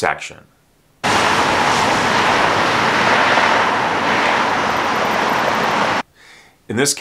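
Traffic rumbles and hisses past outdoors.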